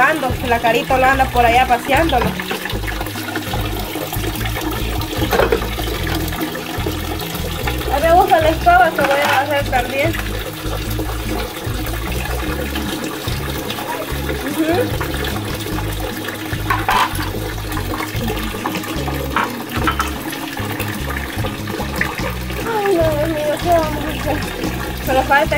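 Dishes clink and rattle as they are washed.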